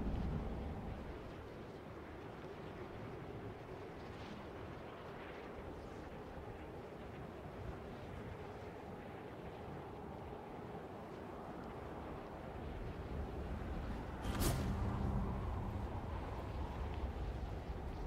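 Wind rushes steadily past during a glide.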